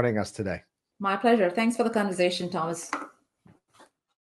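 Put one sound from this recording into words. A woman speaks warmly over an online call.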